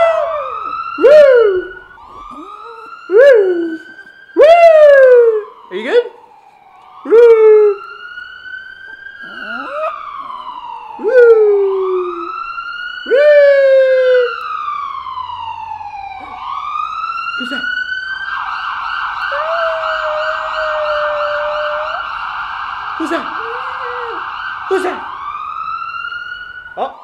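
An ambulance siren wails through computer speakers.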